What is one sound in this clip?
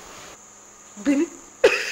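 An older woman speaks, close by.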